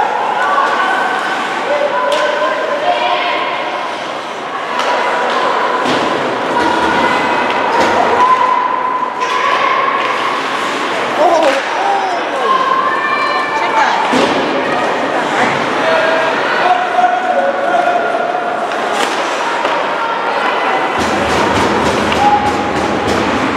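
Players shout to each other across an echoing rink.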